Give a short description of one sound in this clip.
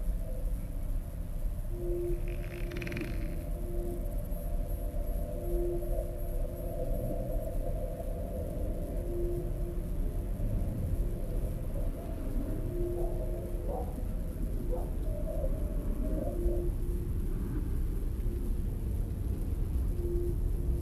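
Wind blows steadily through bare trees outdoors.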